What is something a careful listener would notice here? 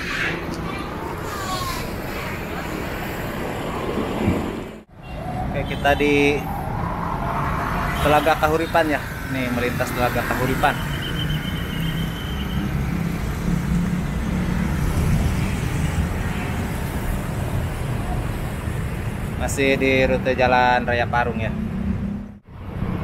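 Motorbike engines hum as they ride past on a road.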